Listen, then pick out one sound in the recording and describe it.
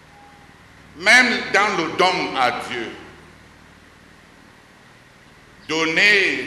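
A middle-aged man speaks with animation into a microphone, with pauses.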